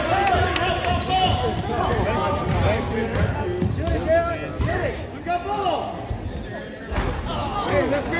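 A crowd of young players and spectators shouts and calls out in a large echoing gym.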